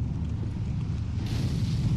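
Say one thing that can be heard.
Flames roar in a burst of fire.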